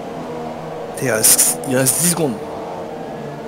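A racing car roars past up close.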